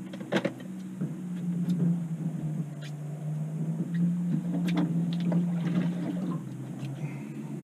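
An outboard motor idles with a steady low hum.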